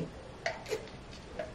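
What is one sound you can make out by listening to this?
A young woman sips a drink through a straw.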